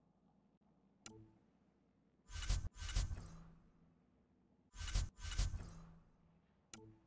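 Short electronic clicks and whooshes sound as menu pages switch.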